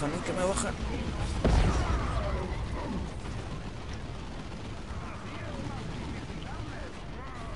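Gunfire rattles in rapid bursts during a battle.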